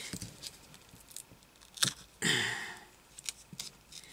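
Scissors snip through tape.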